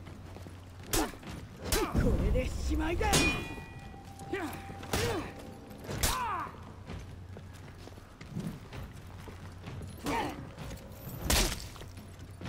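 Steel blades clash and clang in a sword fight.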